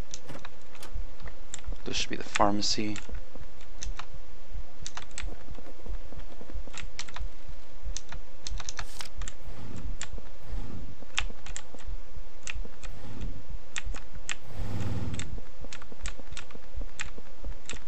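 Footsteps patter steadily in a game.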